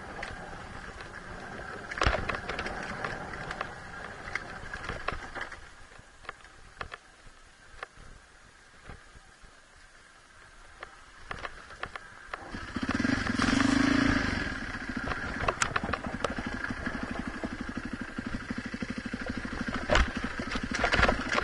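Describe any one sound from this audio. A dirt bike engine hums and revs.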